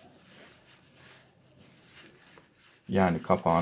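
A cloth rubs against a small metal part.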